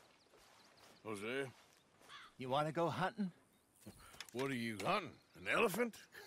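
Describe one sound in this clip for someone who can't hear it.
An elderly man speaks with surprise.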